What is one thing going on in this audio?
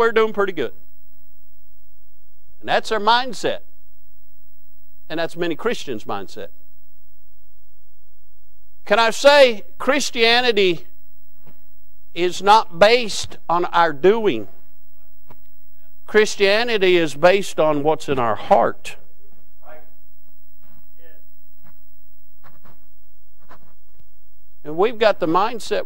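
A middle-aged man speaks with emphasis into a microphone, in bursts with pauses, in an echoing hall.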